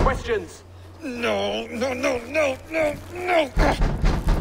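A man cries out in panic, over and over.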